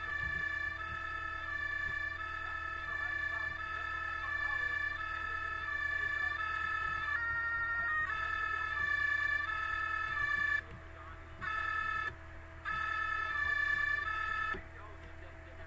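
A two-tone emergency vehicle siren wails.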